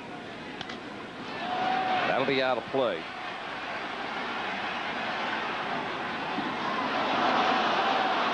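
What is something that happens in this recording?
A large crowd cheers, the roar swelling steadily.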